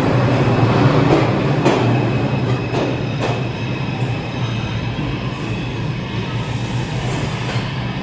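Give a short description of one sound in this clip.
A subway train rumbles away along the tracks, echoing in a tiled tunnel.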